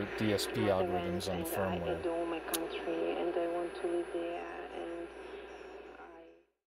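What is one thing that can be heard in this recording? A small radio receiver plays through a speaker.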